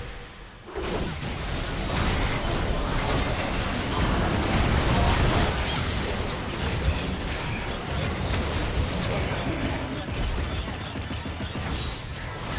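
Magic spells blast, crackle and whoosh in a hectic fantasy battle.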